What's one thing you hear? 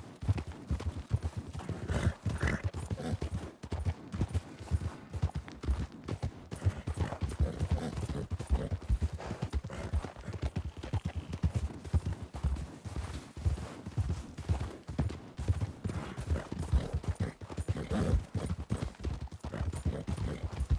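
Horse hooves crunch steadily through deep snow.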